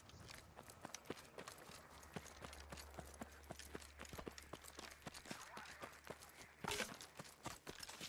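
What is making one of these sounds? Footsteps thud steadily on dirt and wooden floor.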